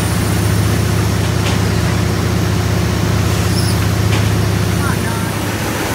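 Steam hisses from an engine.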